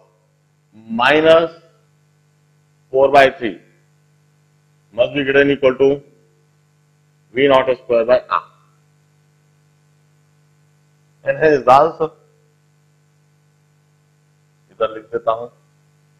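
A man speaks calmly in short phrases, heard close through a microphone.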